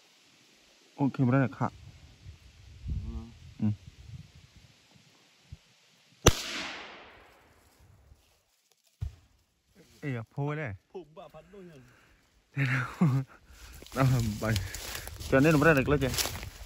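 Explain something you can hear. A man talks in a low voice close by, outdoors.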